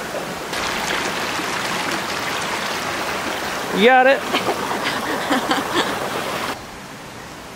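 A stream rushes over rocks close by.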